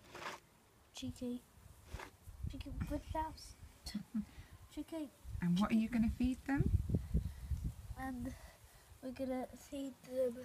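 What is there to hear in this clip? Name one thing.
A young boy talks close by, with animation.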